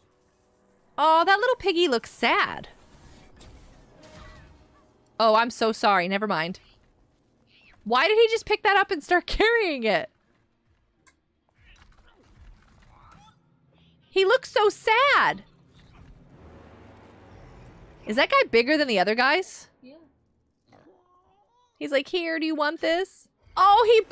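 A woman talks with animation into a close microphone, in short bursts.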